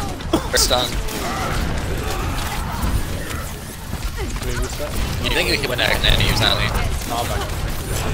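Gunfire and energy blasts crackle in a fast video game fight.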